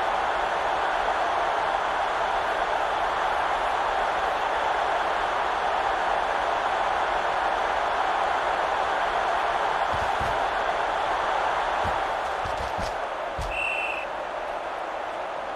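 A stadium crowd roars steadily.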